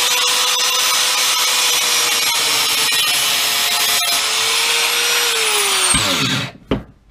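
An angle grinder screeches loudly against metal, then winds down.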